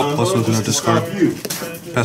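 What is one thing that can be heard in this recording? A card is laid down on a mat with a light tap.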